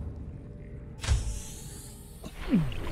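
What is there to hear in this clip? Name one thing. A hatch opens with a sudden rush of water.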